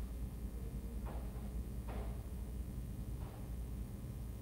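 A small brush strokes softly across a fingernail.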